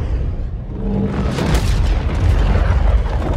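Rock shatters and debris crashes with a loud roar.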